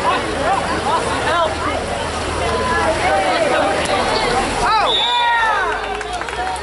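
Several people shout and cheer loudly outdoors.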